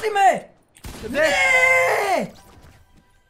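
A young man shouts loudly in dismay.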